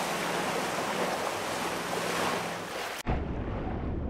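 Water splashes loudly as someone plunges in.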